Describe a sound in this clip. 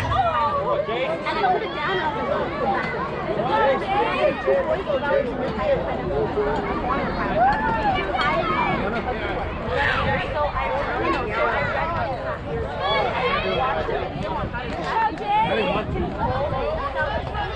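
Children chatter and shout nearby outdoors.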